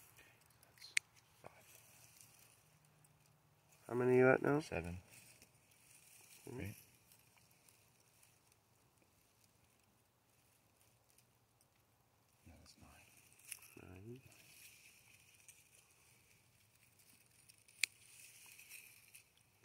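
Scissors snip through plant stems.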